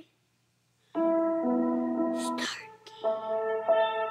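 Eerie game music plays.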